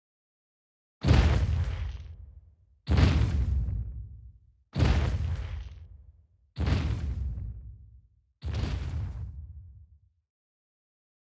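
Heavy dinosaur footsteps thud and boom, one after another.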